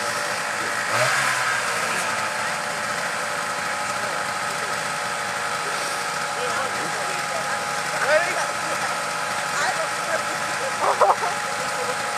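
A snowmobile engine idles steadily nearby.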